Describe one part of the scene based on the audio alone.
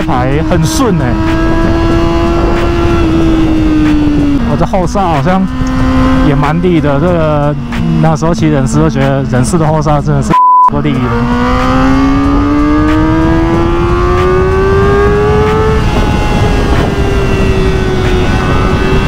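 A motorcycle engine hums, easing off and downshifting, then revving up as the bike speeds up.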